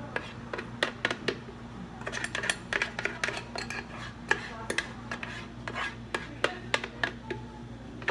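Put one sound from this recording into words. A thick smoothie glugs as it pours into a cup.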